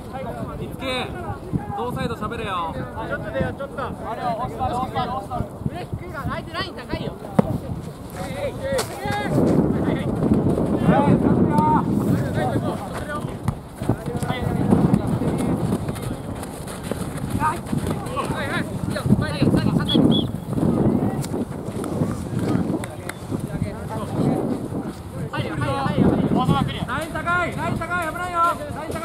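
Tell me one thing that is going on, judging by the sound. Young players shout and call to each other outdoors, some near and some far off.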